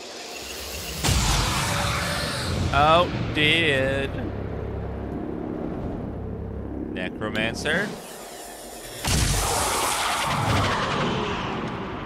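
A weapon fires a crackling energy beam.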